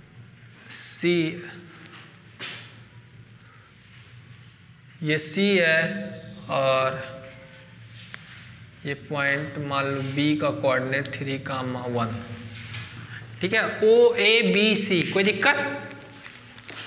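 A man explains calmly, close by, with pauses.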